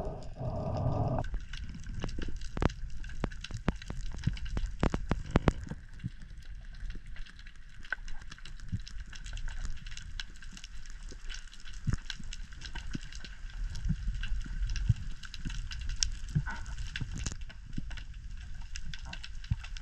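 Water rumbles and swishes softly as a diver swims underwater.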